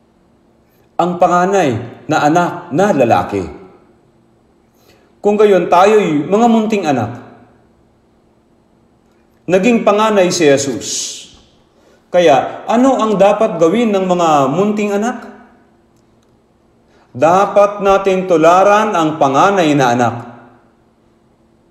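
An elderly man speaks slowly and earnestly into a microphone, with pauses between phrases.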